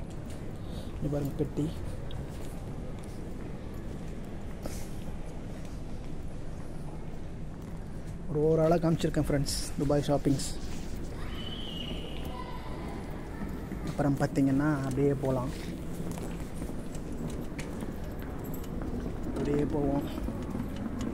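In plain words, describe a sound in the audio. A young man speaks close to the microphone in short bursts.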